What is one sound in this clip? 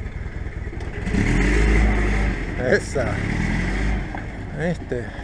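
An engine revs louder.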